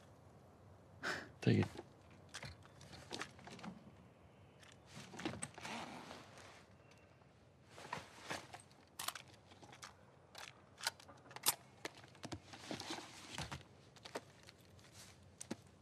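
A man speaks quietly and calmly close by.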